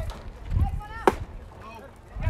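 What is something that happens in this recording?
A baseball pops sharply into a catcher's mitt.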